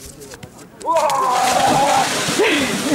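A man shouts from the cold water.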